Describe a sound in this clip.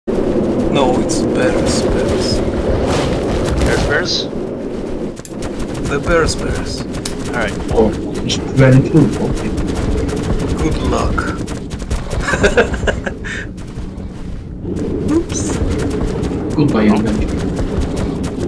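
A large creature's heavy footsteps thud across snow.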